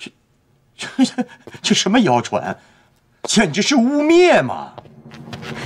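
A middle-aged man speaks with animation, close by.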